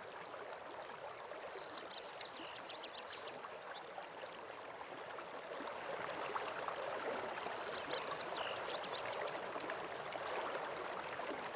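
Footsteps patter on stone and grass.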